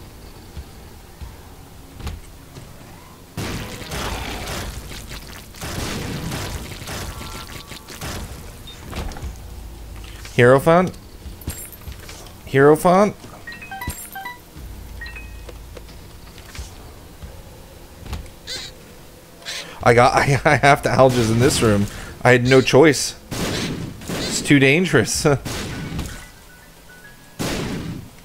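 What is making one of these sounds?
Electronic game sound effects of shots and wet splats play.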